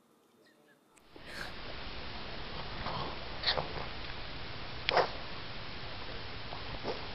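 A dog chews and gnaws noisily on a toy.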